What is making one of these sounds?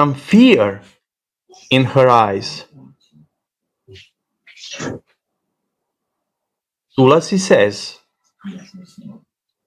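An elderly man speaks calmly over an online call, in short phrases with pauses.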